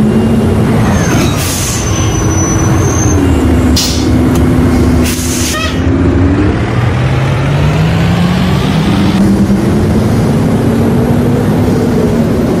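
A bus engine rumbles steadily and rises in pitch as the bus pulls away.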